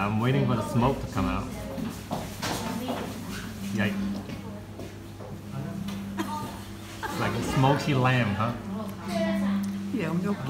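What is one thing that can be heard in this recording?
A young woman talks calmly close by.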